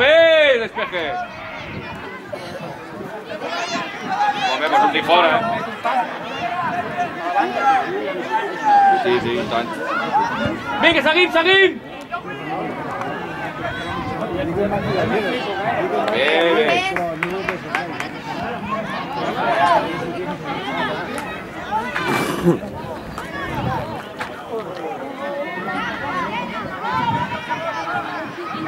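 Young children shout and call to each other outdoors.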